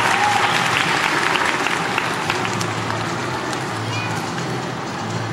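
Music plays loudly over loudspeakers in a large echoing hall.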